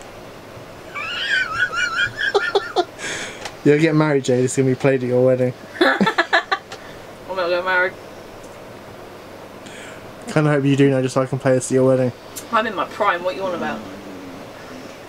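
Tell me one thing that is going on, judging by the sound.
A young woman speaks and laughs close by.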